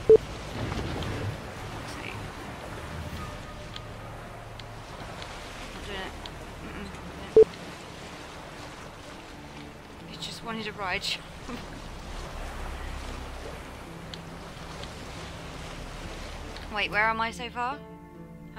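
Waves splash against a small sailing boat.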